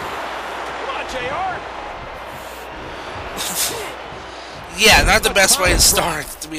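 A crowd roars in a large arena.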